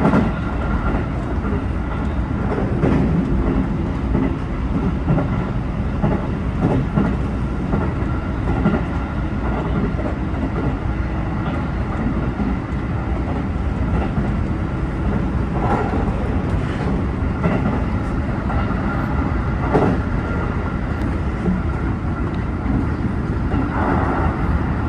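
Train wheels clack over rail joints and points.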